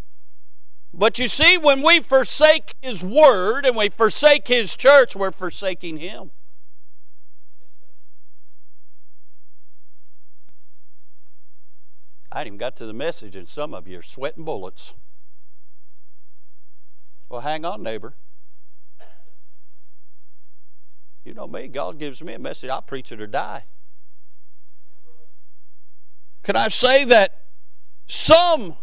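A middle-aged man speaks through a microphone with animation, in a large echoing hall.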